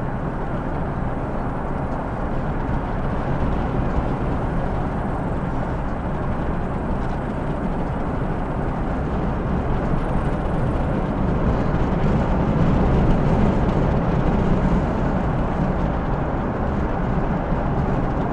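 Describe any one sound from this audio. Tyres roll and rumble on a paved road.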